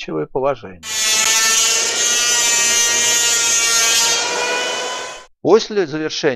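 An electric hand planer whines loudly as it shaves wood.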